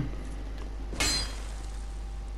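A sword strikes a giant creature with a sharp metallic hit.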